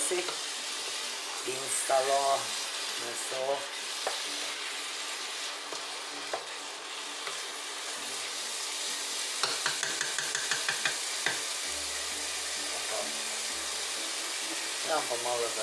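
Food sizzles steadily in a hot pot.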